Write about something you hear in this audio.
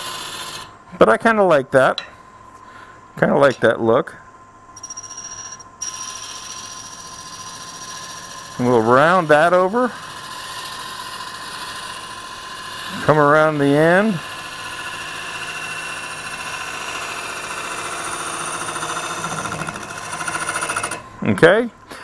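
A chisel scrapes and cuts against spinning wood.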